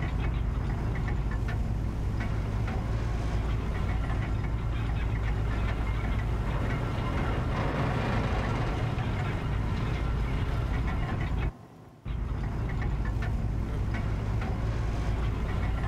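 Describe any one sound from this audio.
A lift rumbles and hums steadily as it moves.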